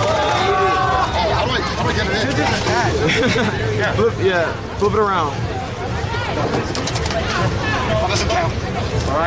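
Plastic toy parts click and rattle close by.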